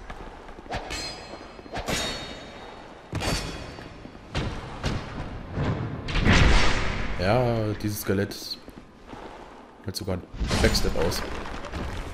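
A sword clangs against an enemy.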